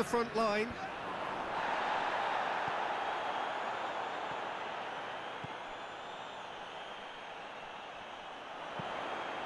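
A stadium crowd roars in the distance.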